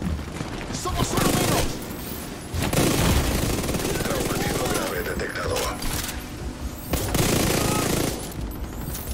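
Guns fire in rapid, loud bursts.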